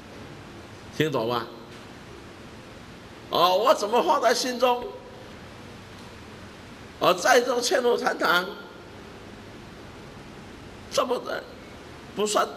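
An older man speaks forcefully in short bursts into a microphone, with pauses between.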